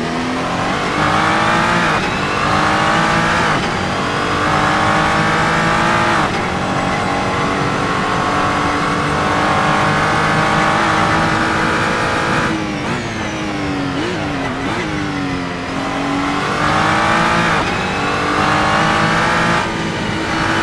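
A racing car engine roars loudly, revving up and dropping in pitch with each gear change.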